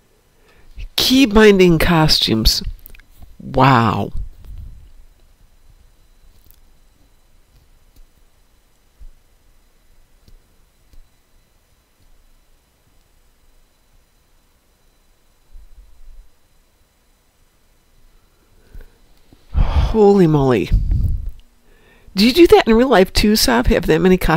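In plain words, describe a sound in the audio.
A man talks with animation into a close microphone.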